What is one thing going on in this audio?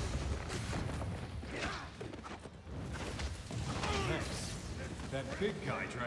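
Punches and blows thud in a scuffle.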